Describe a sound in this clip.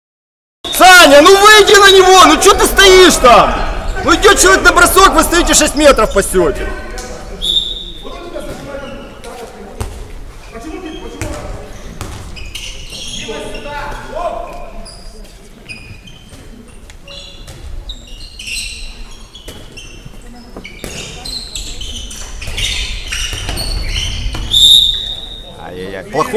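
A ball thuds as it bounces on a hard floor.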